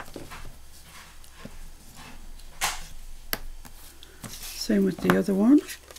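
A bone folder scrapes along a fold in card.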